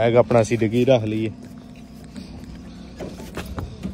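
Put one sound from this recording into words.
A car boot lid clicks open.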